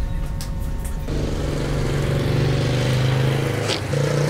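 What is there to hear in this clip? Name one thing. A motorbike engine hums as it rides past outdoors.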